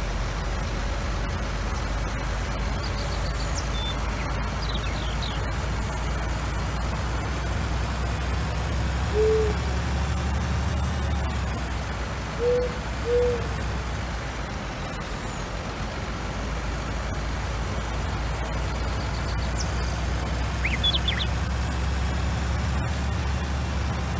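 A heavy truck engine rumbles steadily as it drives along.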